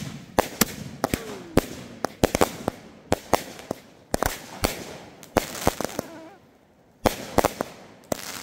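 Firework stars crackle as they burn out.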